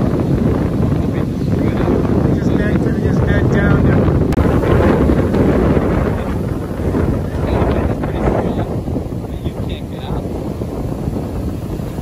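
Waves crash and break onto the shore, outdoors in wind.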